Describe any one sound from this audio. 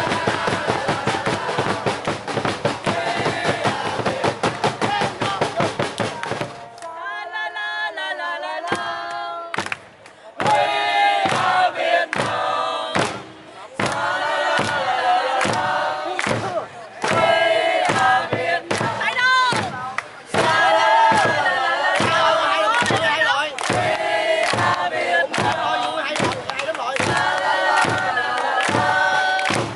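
A crowd claps hands in a steady rhythm.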